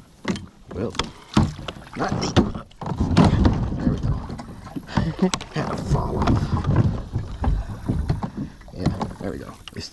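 Water splashes against a plastic kayak hull.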